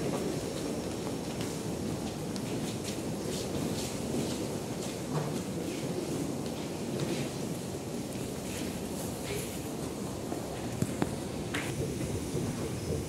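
Footsteps shuffle and clack on a hard floor.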